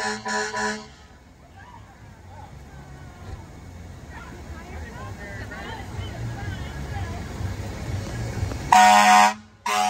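Water sprays hard from a fire hose with a steady hiss.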